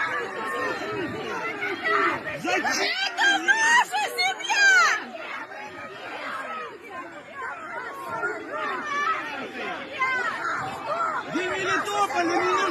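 A crowd of adults shouts excitedly nearby.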